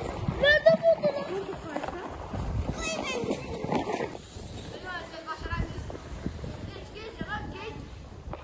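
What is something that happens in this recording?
Children slide and scrape across packed snow.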